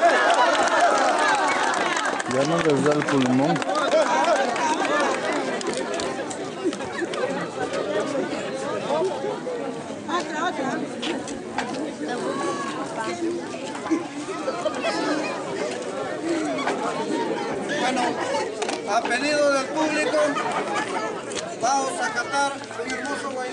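A crowd of men and women chatter outdoors nearby.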